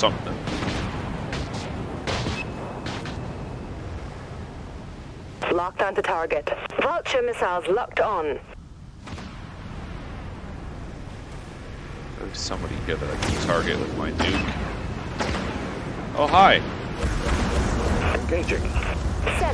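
Laser cannons fire in short bursts.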